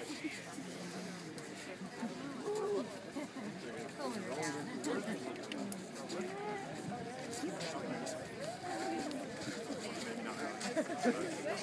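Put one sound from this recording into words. A crowd of young women and men chatters outdoors nearby.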